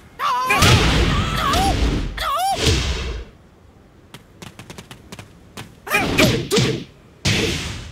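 Heavy blows land with loud thuds and smacks.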